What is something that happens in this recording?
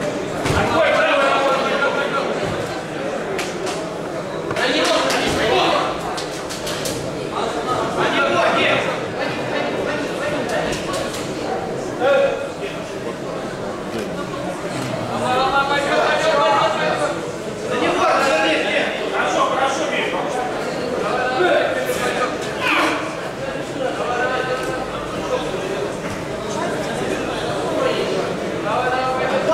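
Bodies thump and scuff on a mat as two men wrestle.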